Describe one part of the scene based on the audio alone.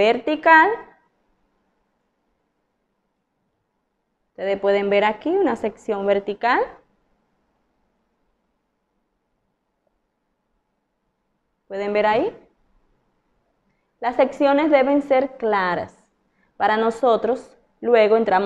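A woman talks calmly and clearly, close to a microphone, with pauses.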